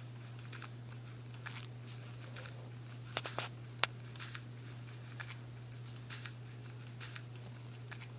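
A pickaxe chips at stone in short, sharp knocks.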